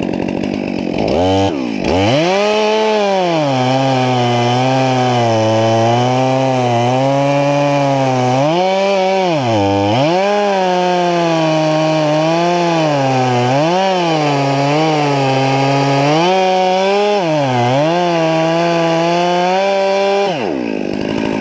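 A chainsaw revs hard and roars, cutting into wood, its pitch rising and dipping.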